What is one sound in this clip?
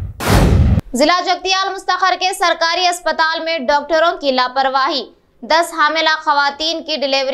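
A young woman speaks calmly and clearly into a microphone, reading out.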